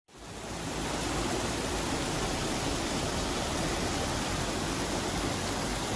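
Water gushes and splashes steadily into a channel.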